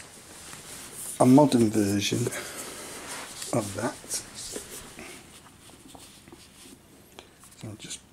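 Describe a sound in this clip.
A cardboard box rustles as a hand handles it.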